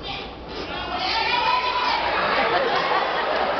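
A group of men and women sing loudly together.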